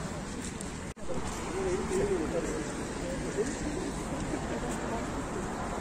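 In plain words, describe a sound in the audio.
Men and women chatter in the background of a walking crowd.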